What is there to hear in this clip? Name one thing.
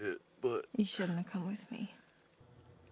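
A young woman speaks quietly and coldly.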